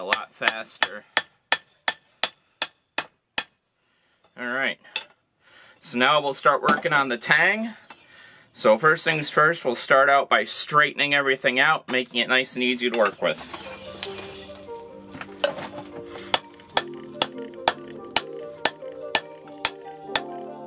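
A hammer strikes metal on an anvil with sharp, ringing blows.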